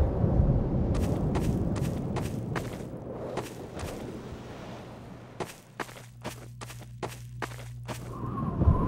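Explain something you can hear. Footsteps crunch on grass and gravel.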